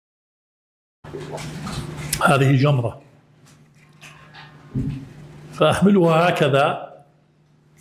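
An elderly man speaks with emphasis into a microphone.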